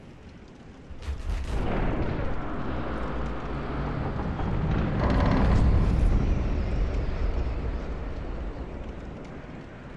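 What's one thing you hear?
Heavy gates grind and creak slowly open with a deep rumble.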